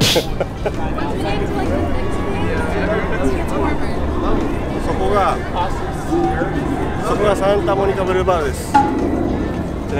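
A crowd murmurs on a busy street outdoors.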